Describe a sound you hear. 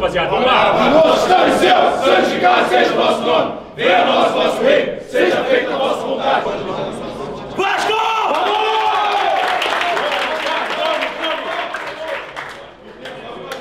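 Men chant and shout loudly together in an echoing room.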